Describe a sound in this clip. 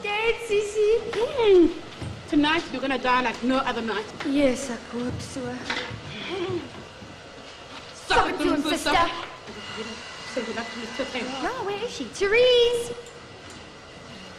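Several women talk with animation close by.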